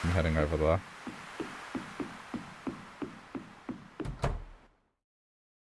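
Footsteps tap quickly and evenly on wooden boards.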